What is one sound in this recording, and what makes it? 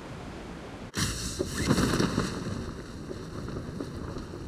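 A parachute snaps open and flaps in the wind.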